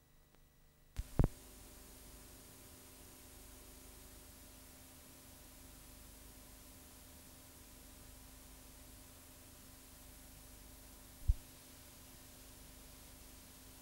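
Static hisses steadily.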